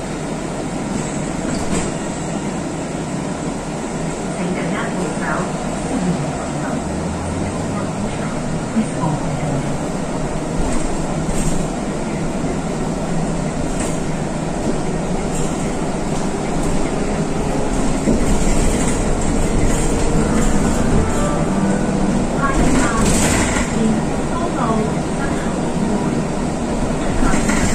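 A vehicle drives steadily along a road with a low rumble of tyres and engine.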